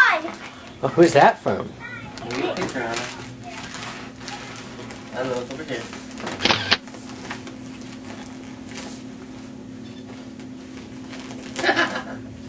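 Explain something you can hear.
Wrapping paper rustles and tears.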